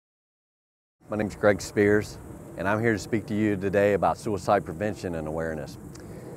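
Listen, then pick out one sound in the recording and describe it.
A middle-aged man speaks calmly and closely into a microphone, outdoors.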